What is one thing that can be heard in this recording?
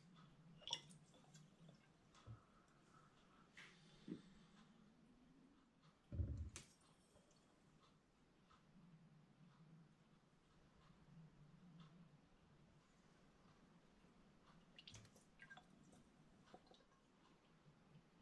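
Liquid trickles through a tube into a glass bottle.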